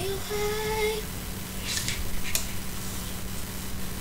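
A young girl sings softly close to a microphone.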